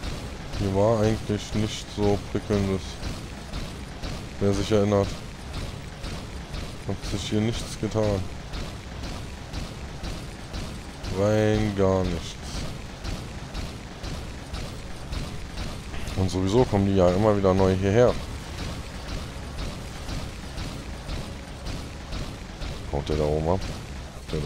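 A gun turret fires rapid bursts of shots.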